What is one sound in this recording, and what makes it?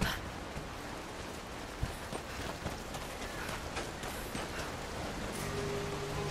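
Footsteps patter on grass and earth.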